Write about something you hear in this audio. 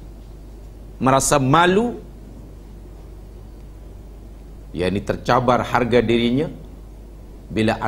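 A middle-aged man speaks calmly into a microphone, in short phrases with pauses.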